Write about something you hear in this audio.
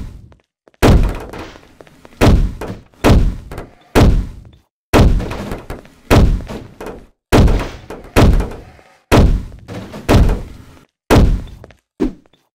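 Heavy gunshots fire again and again, each ringing off.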